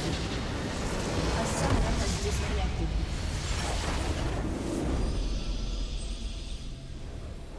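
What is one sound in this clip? Game spell effects blast and crackle loudly.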